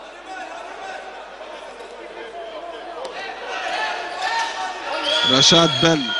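A large crowd murmurs and cheers in an echoing hall, growing louder.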